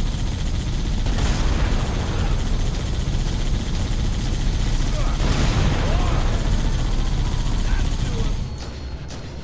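Tank cannon blasts and explosions boom heavily.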